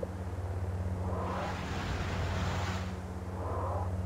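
A lightsaber swings with a whooshing sweep.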